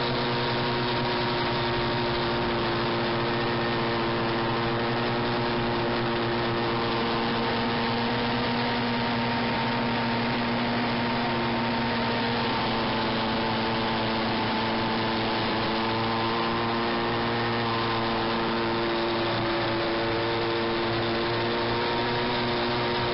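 A snowmobile engine drones steadily up close.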